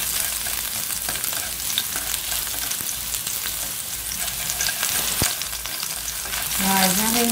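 Chopsticks scrape and tap against a metal pan.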